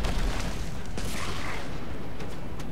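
A lightning bolt crackles and strikes.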